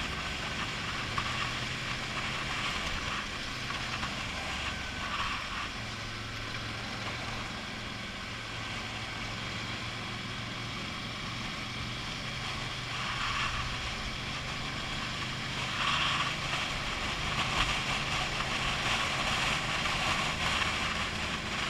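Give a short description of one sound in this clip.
A motorcycle engine hums steadily close by as it rides along.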